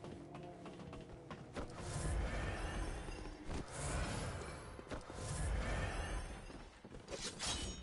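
Footsteps thud on stone and wooden boards.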